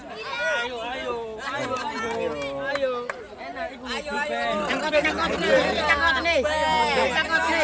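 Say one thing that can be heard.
A crowd of children and adults chatters and shouts nearby outdoors.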